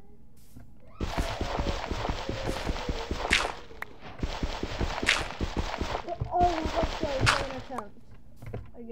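Blocks crunch and break rapidly as a game character digs.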